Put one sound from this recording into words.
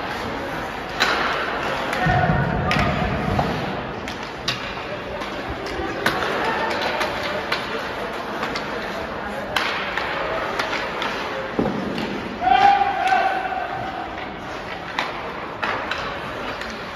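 Hockey sticks clack sharply against a puck in a large echoing rink.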